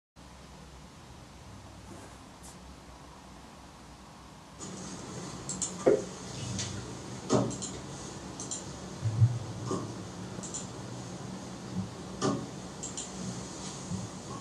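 An electric bass guitar plays a deep, plucked line.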